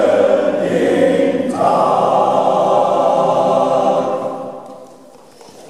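A men's choir sings in a large echoing hall, then the singing fades out.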